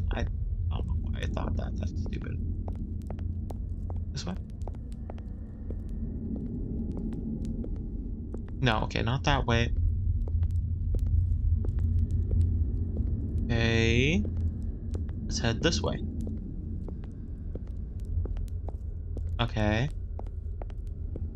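A torch flame burns with a steady low rumble.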